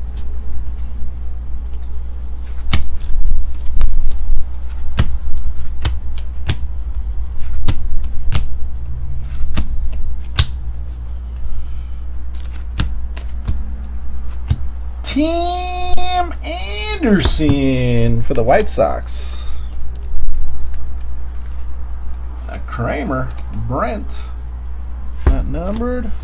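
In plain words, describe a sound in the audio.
Trading cards are flicked and shuffled in someone's hands, with light clicks and rustles.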